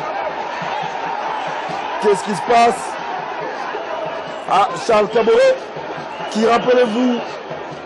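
A large stadium crowd murmurs and hums steadily.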